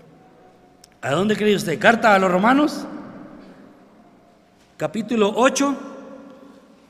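An elderly man speaks slowly and emphatically into a microphone in a large echoing hall.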